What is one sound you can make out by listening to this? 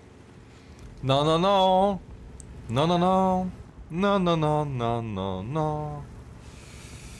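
A young man speaks loudly and with animation into a close microphone, in drawn-out bursts.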